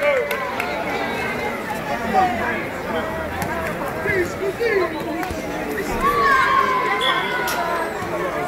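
Men shout and call out to each other.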